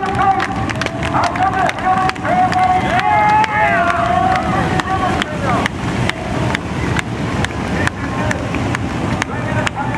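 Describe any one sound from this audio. Many racing engines roar and rev loudly nearby, outdoors.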